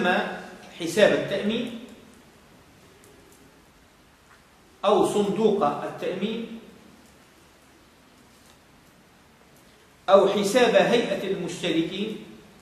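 A middle-aged man speaks calmly in short bursts with pauses, in a room with a slight echo.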